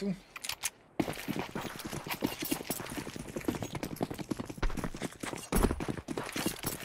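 Footsteps patter quickly and steadily on hard ground.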